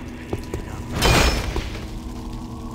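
Flames burst and roar briefly.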